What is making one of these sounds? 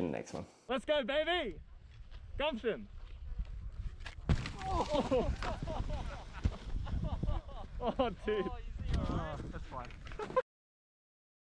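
A young man shouts and laughs close by.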